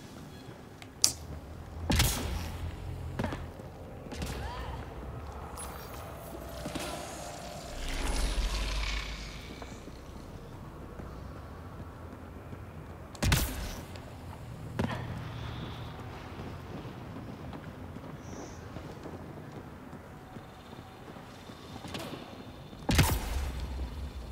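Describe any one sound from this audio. Sci-fi guns fire in sharp, loud bursts.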